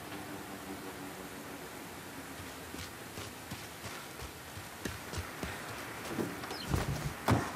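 Footsteps tap on a wet pavement.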